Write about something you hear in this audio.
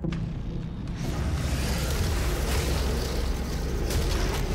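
A roaring crackle of explosions swells and goes on.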